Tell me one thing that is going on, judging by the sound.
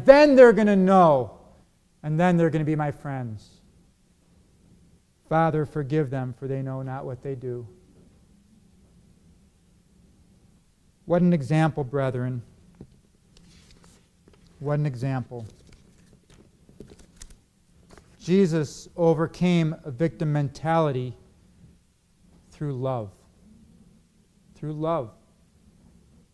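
A middle-aged man preaches into a microphone with emphatic pauses.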